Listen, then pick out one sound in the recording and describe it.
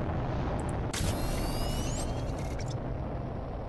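A shimmering electronic whoosh sweeps upward.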